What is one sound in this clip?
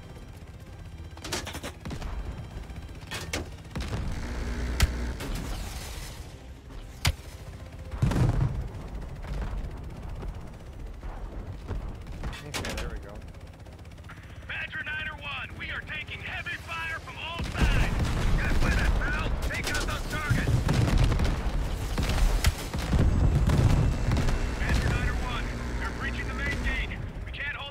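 An attack helicopter's rotor thumps.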